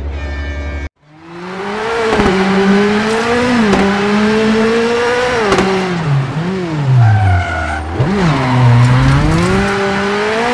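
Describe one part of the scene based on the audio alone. A rally car engine roars and revs, its pitch rising and dropping with each gear change.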